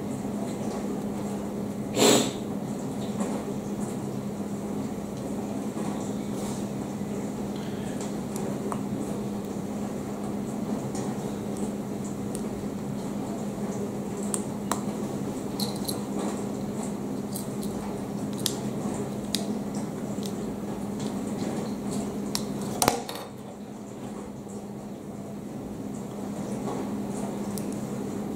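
Small plastic bricks click and snap together in someone's fingers.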